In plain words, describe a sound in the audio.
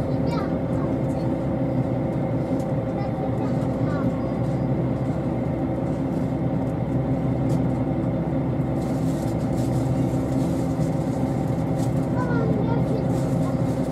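A train hums steadily as it moves.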